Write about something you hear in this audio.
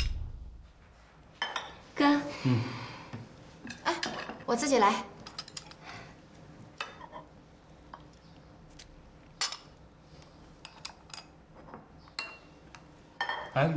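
Dishes and spoons clink on a table.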